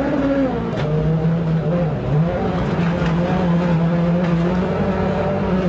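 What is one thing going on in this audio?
A race car engine roars loudly, shifting in pitch as the car accelerates.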